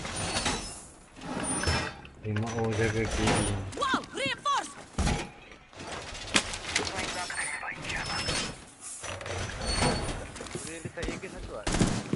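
Heavy metal panels clank and latch into place.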